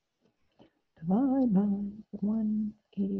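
A woman speaks calmly through a computer microphone.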